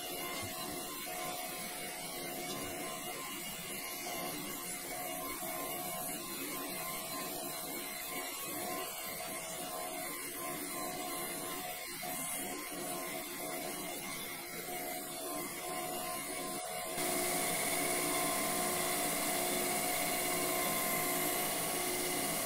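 A grinding wheel grinds against a spinning metal shaft with a hissing rasp.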